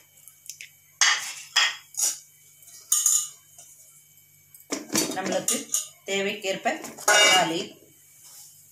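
Tomatoes drop into a metal bowl with dull knocks.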